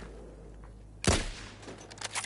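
A rifle shot cracks and echoes.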